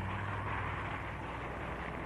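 An aircraft engine drones overhead.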